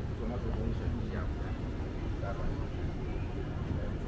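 Men chat quietly nearby.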